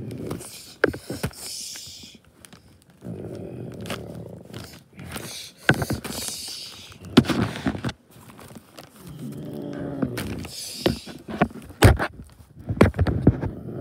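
Stiff paper rustles and crinkles.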